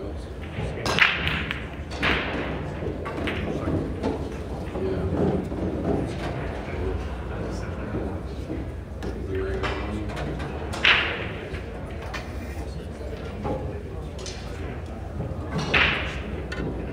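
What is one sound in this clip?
Pool balls click sharply against each other on a table.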